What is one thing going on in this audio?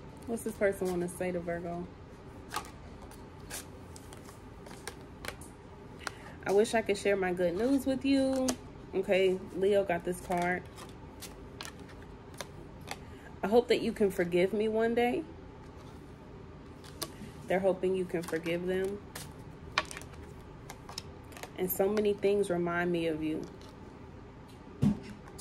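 Playing cards shuffle and slap together.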